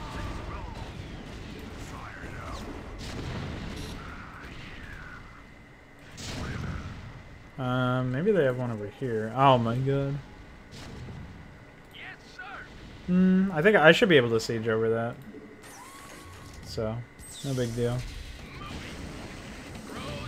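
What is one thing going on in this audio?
Explosions boom amid gunfire in a battle.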